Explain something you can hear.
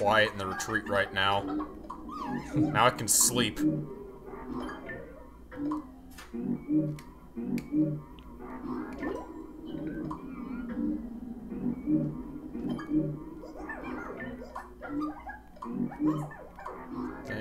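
Cheerful video game music plays with a bouncy, plucked beat.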